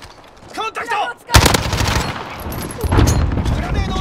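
An automatic rifle fires a rapid burst of gunshots.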